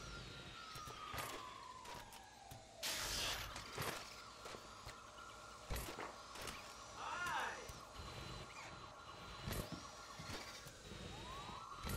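A small toy car's electric motor whines steadily as it drives along.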